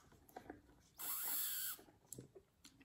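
A man sips loudly through a straw.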